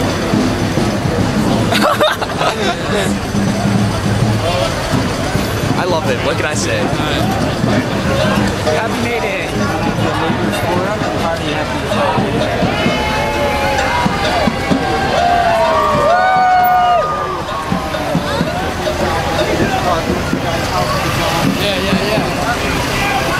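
A crowd of young men and women chants and shouts loudly outdoors.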